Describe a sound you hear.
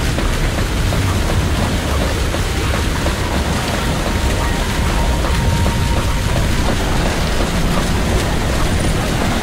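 A low rumbling hum drones steadily.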